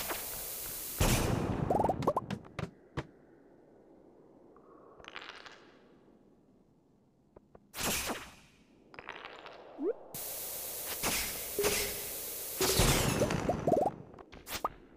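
A bomb explodes with a loud boom.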